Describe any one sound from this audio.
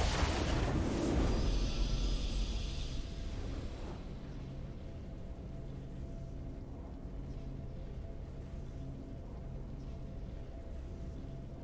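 A triumphant video game victory tune plays softly.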